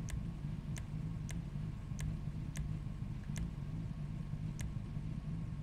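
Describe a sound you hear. Soft menu clicks tick several times.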